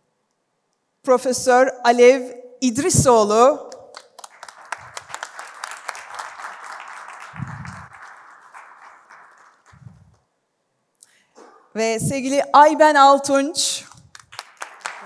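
A woman announces through a microphone over loudspeakers in a large hall.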